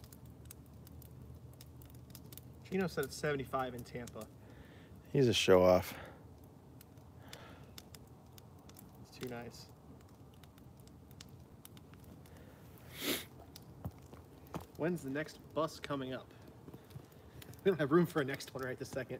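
A fire crackles and pops outdoors.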